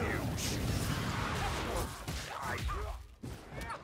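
A heavy weapon slashes and thuds into a brute.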